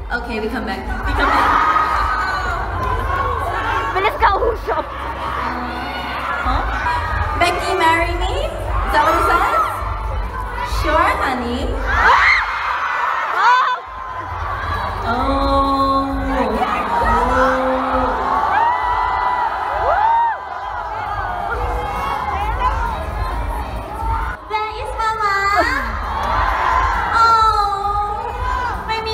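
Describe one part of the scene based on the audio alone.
A young woman speaks into a microphone over loudspeakers with animation.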